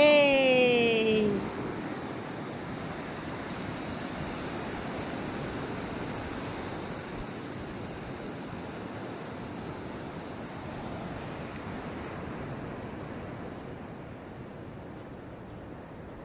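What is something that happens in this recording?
Waves wash onto a beach nearby.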